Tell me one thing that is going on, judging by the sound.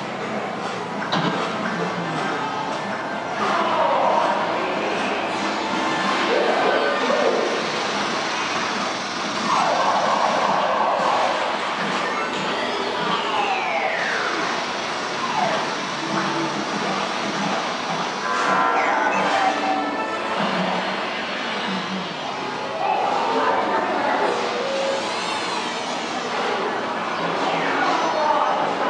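Pinball machines play electronic beeps, chimes and sweeping tones.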